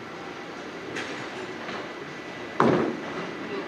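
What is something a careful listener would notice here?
A bowling ball thuds onto a lane and rolls away.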